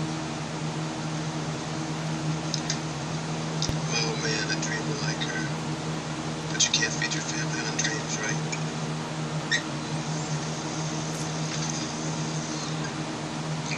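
A pen taps and scratches lightly on paper.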